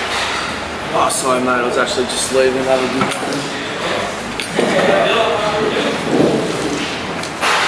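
Young men talk with each other nearby.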